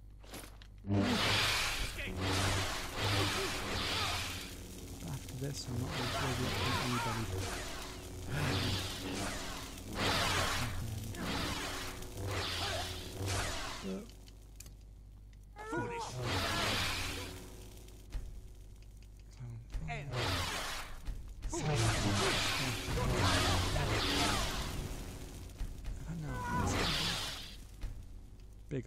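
Electric magic crackles and sizzles in bursts.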